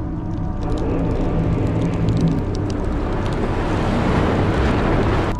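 Electricity crackles and snaps in sharp bursts.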